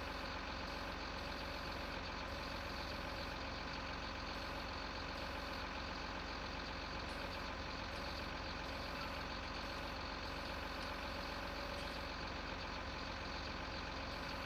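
A hydraulic crane arm whines as it moves.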